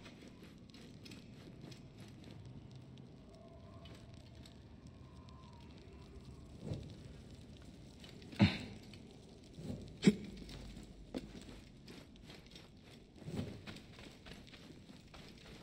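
Footsteps pad on a stone floor.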